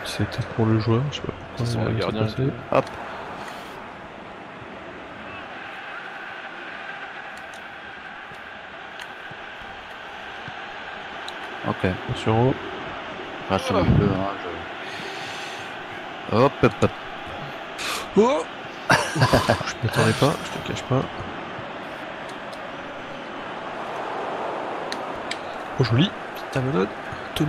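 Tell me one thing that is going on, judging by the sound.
A large stadium crowd murmurs and cheers steadily in the background.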